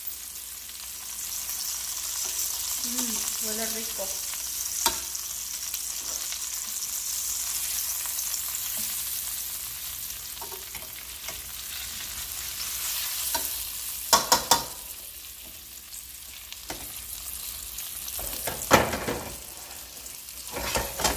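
Oil sizzles and crackles steadily in a frying pan.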